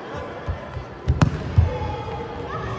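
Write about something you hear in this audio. A ball is kicked with a sharp thump.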